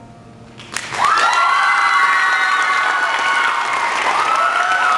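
Young women sing a long, held note together through a microphone in an echoing hall.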